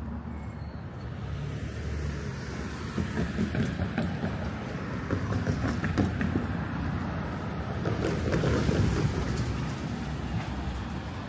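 A car drives past on the street.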